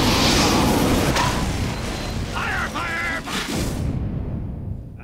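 A flamethrower roars loudly.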